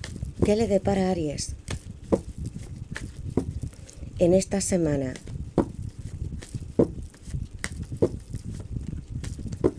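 Cards rustle and slap softly as they are shuffled by hand.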